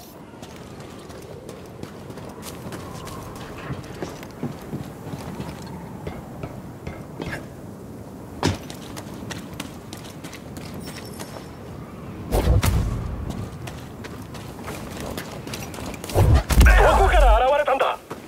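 Footsteps run over stone and wet ground.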